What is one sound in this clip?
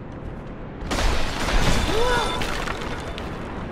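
A sword slashes and strikes hard.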